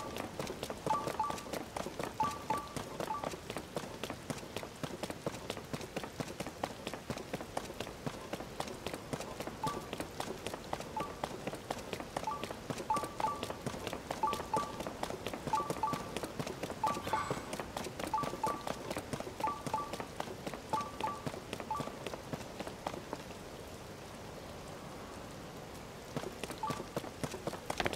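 Rain patters steadily all around, outdoors.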